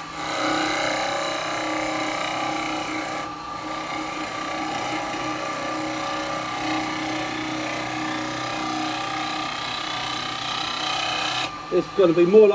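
A chisel scrapes against spinning wood with a rough, hissing sound.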